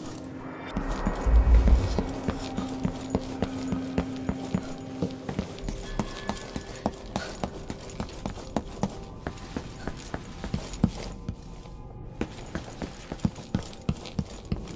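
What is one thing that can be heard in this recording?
Footsteps tap steadily across a hard floor and up stairs.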